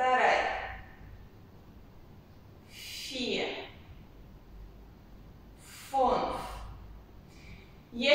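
A young woman speaks calmly in short phrases, with a slight echo of a large hall.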